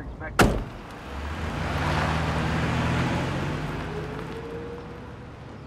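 A sedan taxi pulls away.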